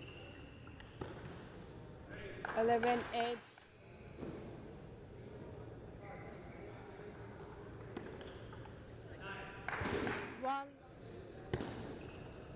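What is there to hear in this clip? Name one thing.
A table tennis ball clicks sharply off paddles and the table.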